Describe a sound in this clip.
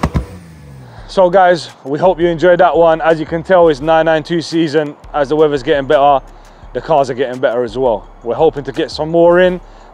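A man speaks calmly and clearly into a clip-on microphone, close by.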